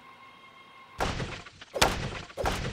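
Wooden crates clatter and tumble to the floor.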